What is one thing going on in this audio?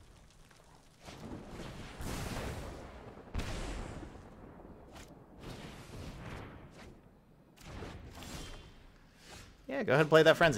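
Game sound effects whoosh and swell.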